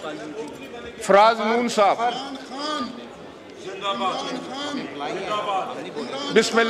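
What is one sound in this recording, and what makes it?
A middle-aged man speaks formally into a microphone.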